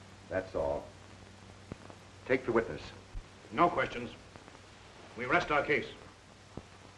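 A man speaks in short, tense bursts.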